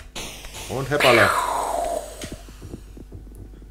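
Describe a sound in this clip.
A rocket explodes with a loud boom that fades.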